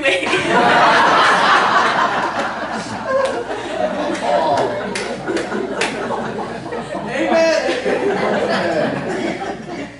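A middle-aged woman laughs into a microphone.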